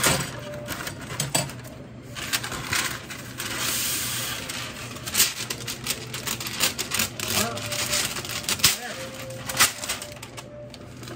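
Stiff paper rustles and crinkles as it is handled up close.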